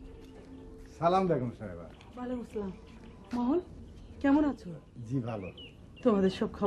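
A middle-aged woman talks with animation.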